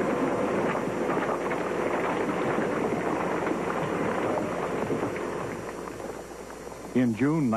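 Rocks tumble and clatter down a slope.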